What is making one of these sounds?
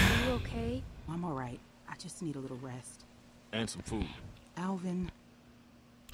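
A woman speaks calmly through a loudspeaker.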